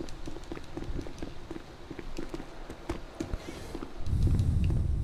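Footsteps run quickly across a hard stone floor.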